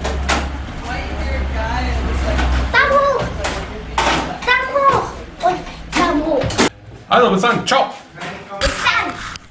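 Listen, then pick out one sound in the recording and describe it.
A young girl speaks and squeals excitedly close by.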